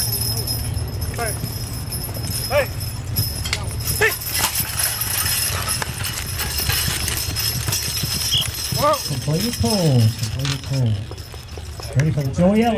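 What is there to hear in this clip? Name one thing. Hooves of a team of mules thud on soft dirt.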